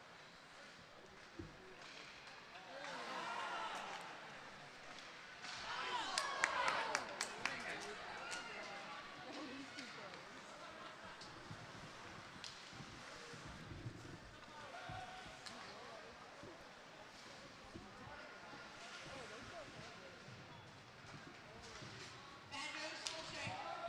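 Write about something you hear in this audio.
Ice skates scrape across a rink.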